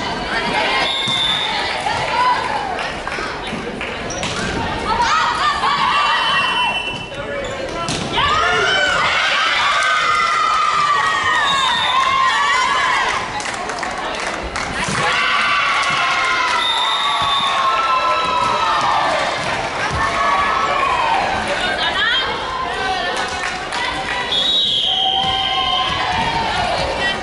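Young women call out to each other across the hall.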